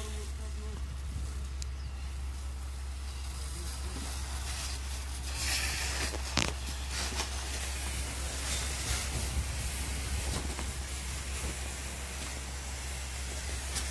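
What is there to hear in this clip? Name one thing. Water sprays from a hose and hisses on smouldering embers.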